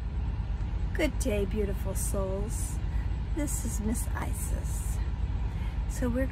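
A woman speaks calmly and close up.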